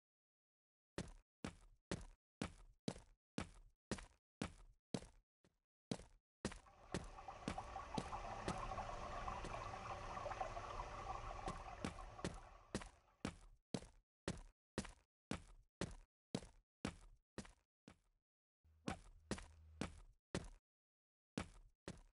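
Footsteps tap steadily across a hard floor.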